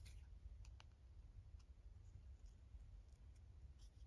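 Scissors snip through card.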